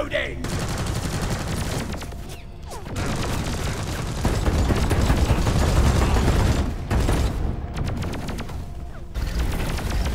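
A heavy gun fires in rapid, loud bursts.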